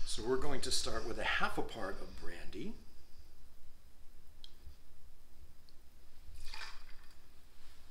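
Liquid pours into a glass.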